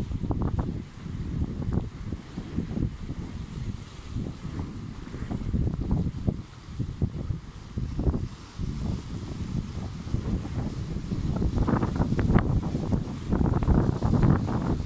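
Wind blows hard and buffets loudly, outdoors.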